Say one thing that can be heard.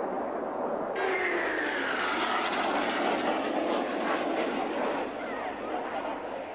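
A jet aircraft roars past low with a falling whine.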